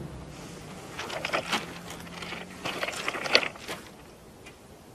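Waves wash gently onto a rocky shore.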